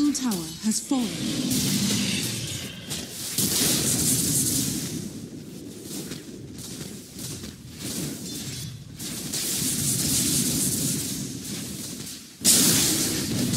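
Fighters clash with magic blasts and hits in a game battle.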